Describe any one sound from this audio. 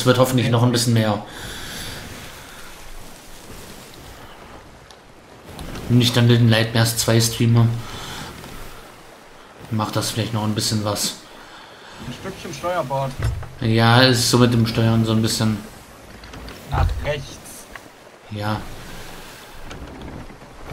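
Wind blows through a ship's sails.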